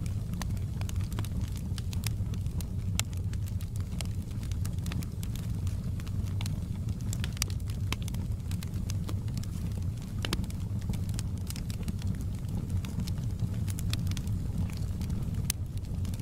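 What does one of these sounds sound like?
Burning logs crackle and pop sharply in a fire.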